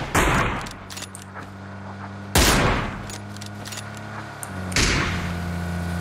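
Loud rifle shots crack and echo.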